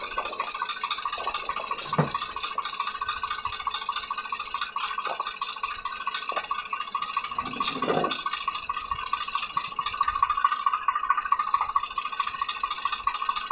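A tractor engine runs steadily nearby.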